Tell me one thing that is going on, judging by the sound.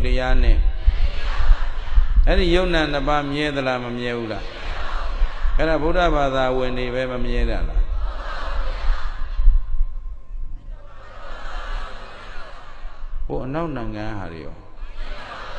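A middle-aged man speaks calmly into a microphone, heard through a loudspeaker.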